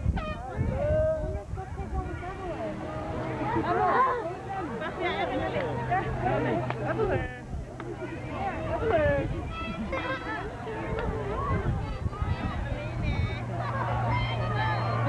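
A man and women talk close by.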